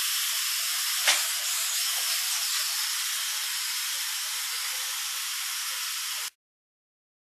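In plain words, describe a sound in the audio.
A small toy car's motor whirs as it rolls across a wooden floor.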